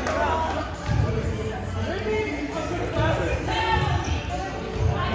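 Young men and women chatter and call out in a large echoing gym.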